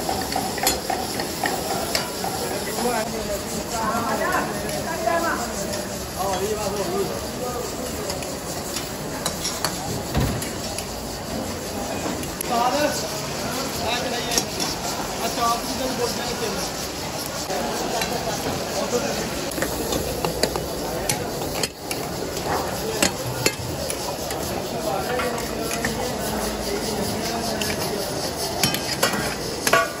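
Wood fires roar and crackle under cooking pots.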